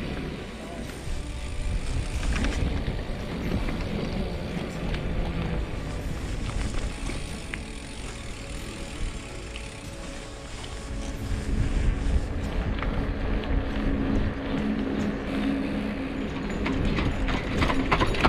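Bicycle tyres hum on a paved path.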